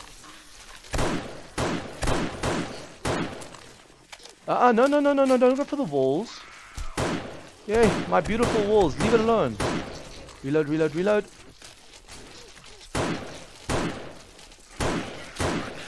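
Gunshots fire in quick, sharp bursts.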